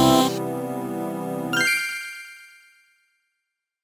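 Upbeat electronic game music plays, then rings out and stops.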